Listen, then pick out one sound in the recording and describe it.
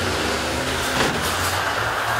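Metal crunches as buses collide.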